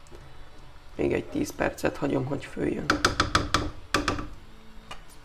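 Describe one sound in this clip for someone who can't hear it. A wooden spoon stirs thick sauce in a metal pan, scraping and tapping.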